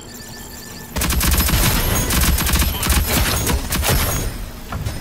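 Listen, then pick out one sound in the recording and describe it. Explosions boom and roar with fire.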